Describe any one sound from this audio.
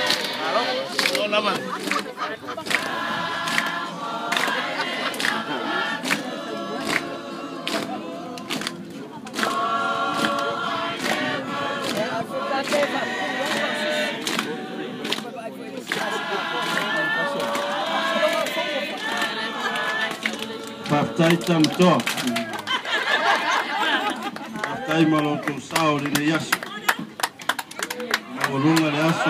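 A large group sings together outdoors.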